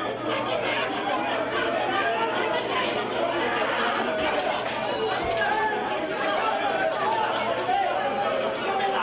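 A crowd of men shouts and talks excitedly close by.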